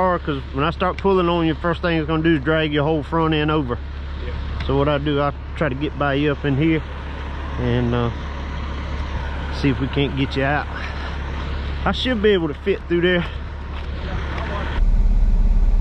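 A truck engine idles with a low steady rumble.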